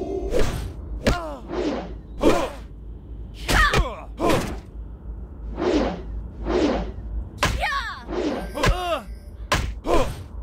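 A creature growls and snarls in bursts.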